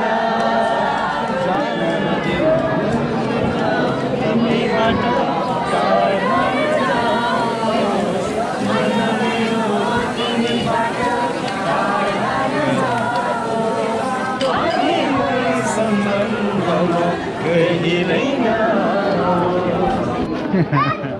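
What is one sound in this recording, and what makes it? A crowd of young men and women chatters and shouts outdoors.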